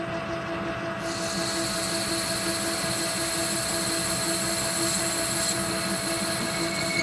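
A lathe tool cuts metal with a high, steady hiss.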